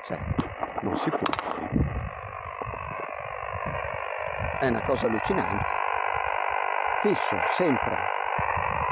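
A small portable ham radio transceiver hisses with static.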